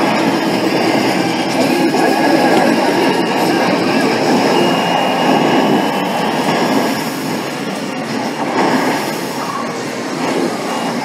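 Game music and noise play steadily through loudspeakers.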